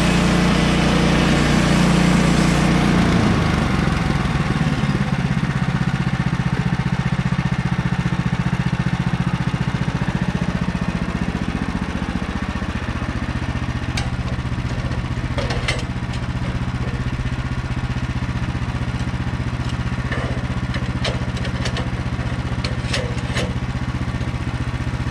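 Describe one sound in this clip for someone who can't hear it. The gasoline engine of a portable bandsaw sawmill runs.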